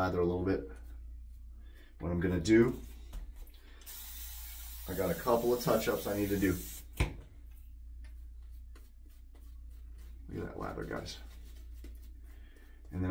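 A shaving brush swishes lather against stubble.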